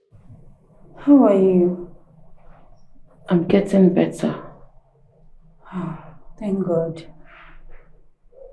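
A woman speaks in a worried voice, close by.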